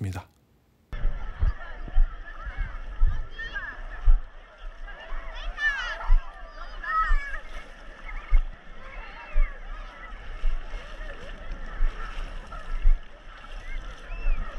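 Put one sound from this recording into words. A crowd of bathers chatters and calls out in the distance.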